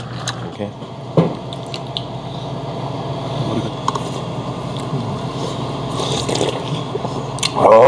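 Chopsticks and spoons clink against dishes.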